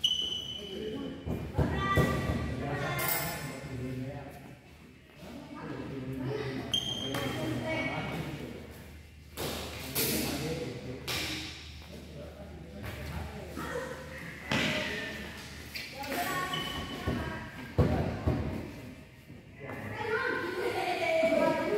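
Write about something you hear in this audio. Shoes squeak and patter on a court floor.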